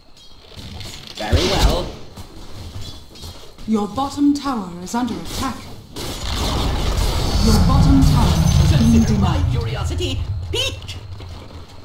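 Fantasy battle sound effects clash and burst as spells are cast.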